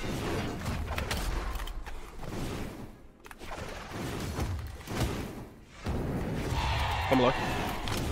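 Video game hits and whooshes crack in quick bursts.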